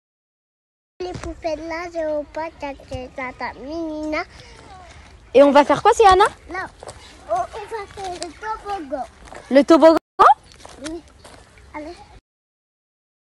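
A toddler girl babbles and chatters with animation close by.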